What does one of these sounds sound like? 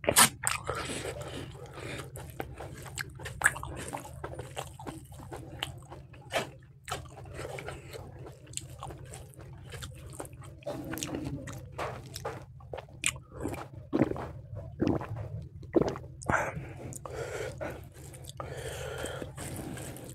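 Fingers squish and mix rice on a metal plate.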